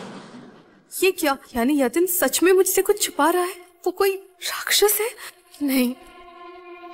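A young woman speaks in a distressed voice.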